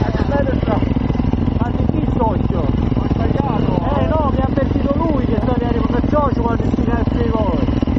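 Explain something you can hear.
A second motorcycle engine idles close by.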